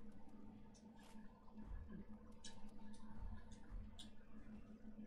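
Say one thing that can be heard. Menu clicks tick sharply.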